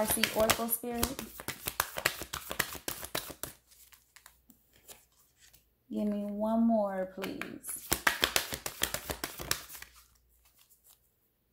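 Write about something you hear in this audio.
Playing cards riffle and flutter as they are shuffled.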